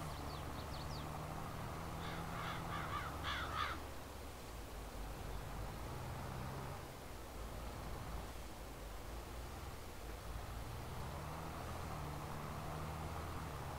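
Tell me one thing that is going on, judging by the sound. Hay bales thump as a bale loader picks them up.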